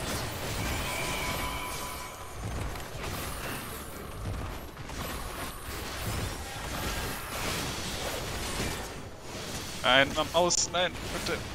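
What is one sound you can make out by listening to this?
Game battle effects whoosh and crackle throughout.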